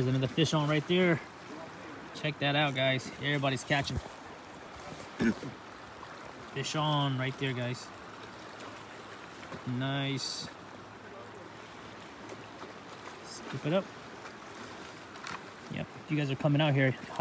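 A river flows and laps steadily.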